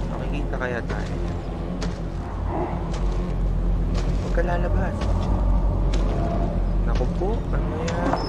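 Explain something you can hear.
Heavy footsteps tread through leaves and undergrowth.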